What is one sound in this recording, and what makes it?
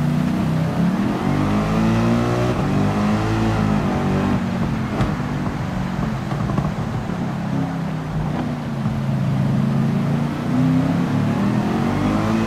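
Another racing car engine whines nearby.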